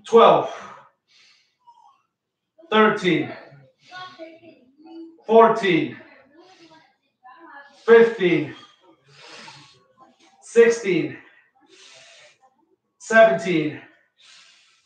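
A man grunts and exhales loudly with effort at a steady pace.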